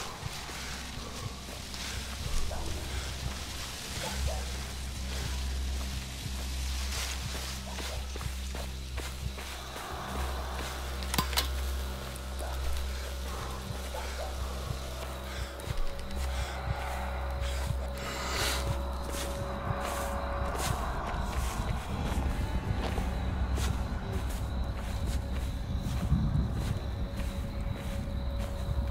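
Footsteps crunch over dry leaves and twigs.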